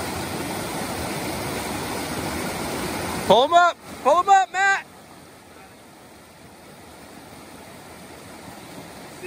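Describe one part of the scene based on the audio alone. A man splashes as he wades through rushing water.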